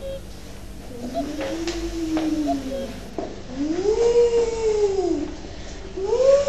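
A young boy makes rising and falling hooting sounds nearby.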